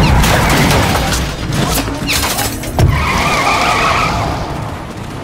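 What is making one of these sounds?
A car crashes noisily into something.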